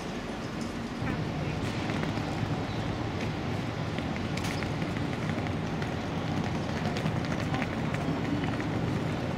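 A suitcase's wheels roll over paving stones.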